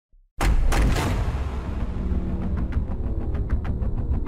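A fireball roars and whooshes.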